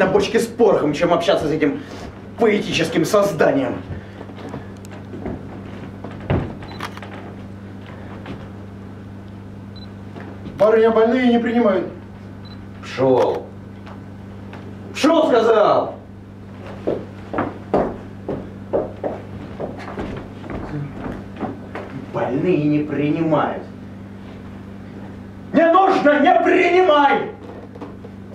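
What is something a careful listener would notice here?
A man speaks loudly and with expression on a stage.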